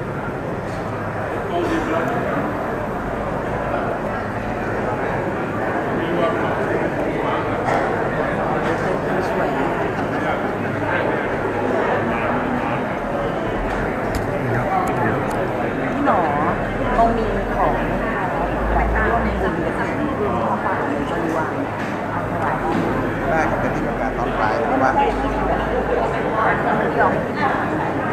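A crowd of men and women chatters all around in a large echoing hall.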